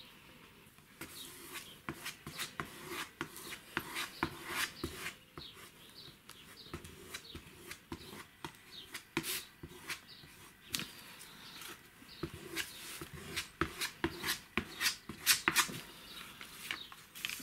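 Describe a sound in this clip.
A brush scratches over paper.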